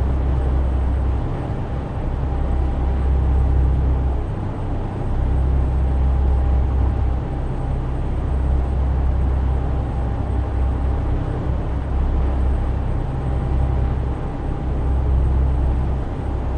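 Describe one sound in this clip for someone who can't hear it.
Tyres roll over the road with a constant rumble.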